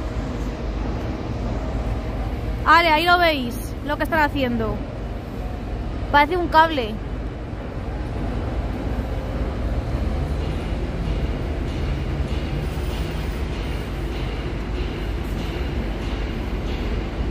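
A crane engine rumbles steadily.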